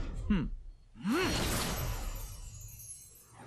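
A blade whooshes through the air with a loud swish.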